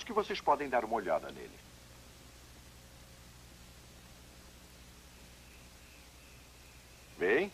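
An older man speaks with animation, close by.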